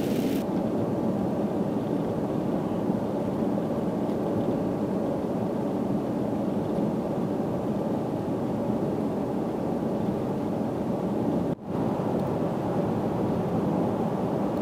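Tyres rumble steadily on a wet road.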